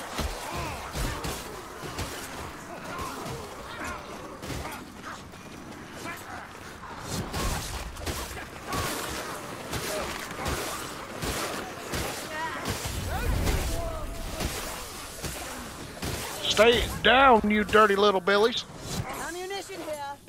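Weapons strike and slash in quick succession.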